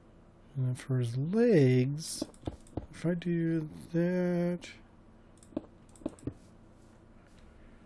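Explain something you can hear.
Stone blocks are set down with short, dull knocks.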